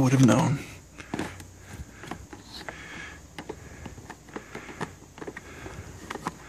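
Plastic cases click and rattle as a hand pulls them from a shelf.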